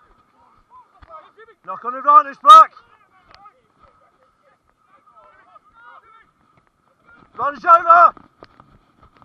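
Men shout loudly across an open field outdoors.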